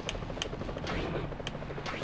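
A boat engine hums nearby.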